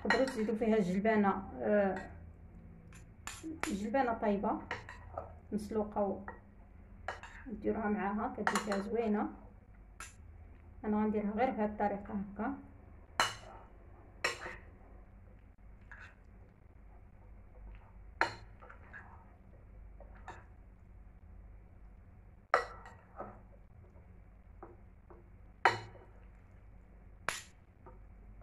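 Metal spoons clink against a bowl while stirring.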